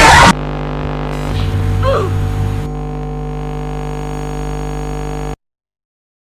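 Harsh electronic static buzzes and hisses steadily, then cuts off abruptly.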